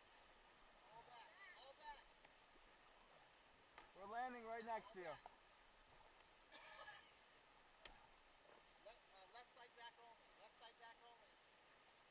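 Men call out and shout to each other over the water.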